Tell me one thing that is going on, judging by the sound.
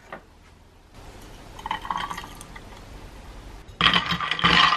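Coffee pours into a metal flask with a splashing trickle.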